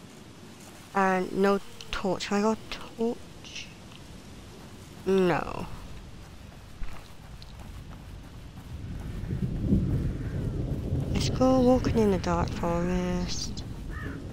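A man calls out loudly outdoors.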